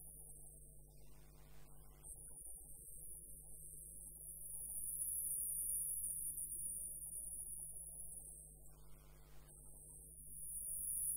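A gouge scrapes and cuts into spinning wood on a lathe, hollowing it out.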